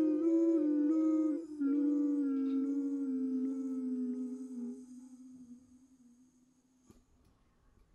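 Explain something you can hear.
A saxophone plays a long held note that slowly fades.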